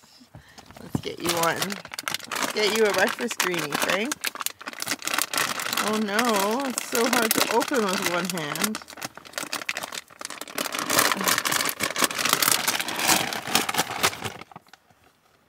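A paper bag crinkles and rustles close by.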